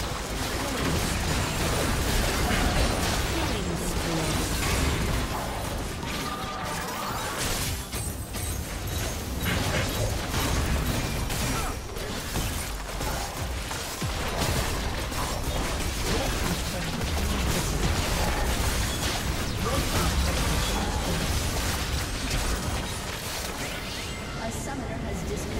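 Game spell effects crackle and blast in a busy fight.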